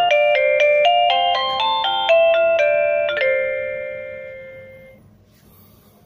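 A doorbell chime plays a melody and rings out.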